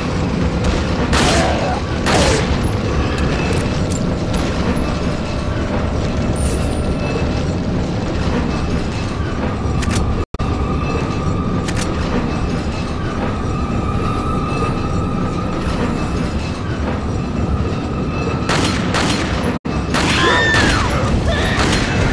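A mine cart rumbles and rattles along rails.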